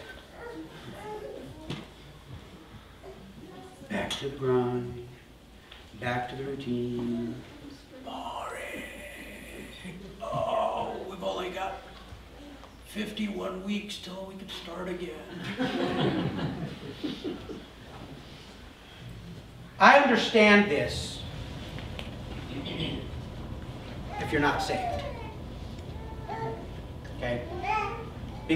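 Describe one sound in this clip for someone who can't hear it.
A middle-aged man speaks calmly in a large echoing room.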